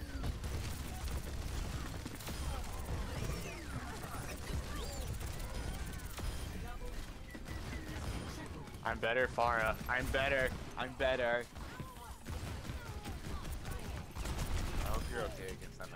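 A rapid-firing video game gun shoots in bursts.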